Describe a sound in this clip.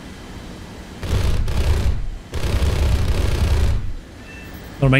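Cannons fire in a rough, rattling burst.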